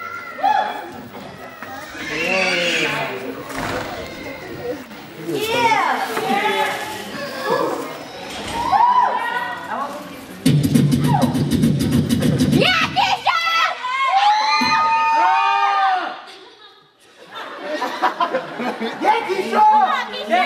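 A young woman speaks loudly and with animation through a microphone.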